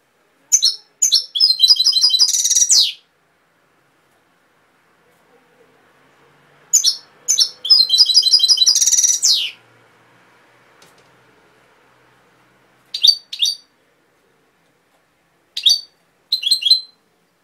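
A small caged bird sings loud, bright chirps and trills in bursts, close by.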